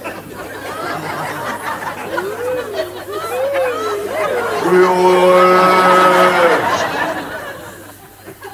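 A crowd laughs loudly.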